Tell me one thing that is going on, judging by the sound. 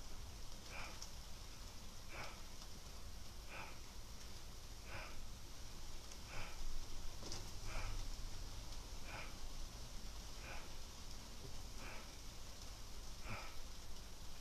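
A man breathes out in a steady rhythm.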